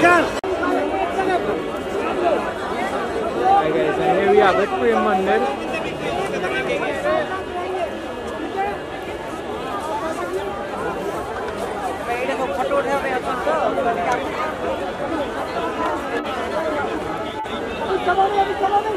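A large crowd of men and women chatters loudly all around outdoors.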